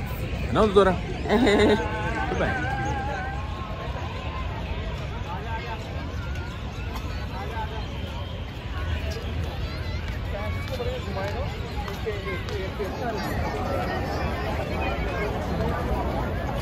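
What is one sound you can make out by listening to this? A crowd chatters outdoors all around.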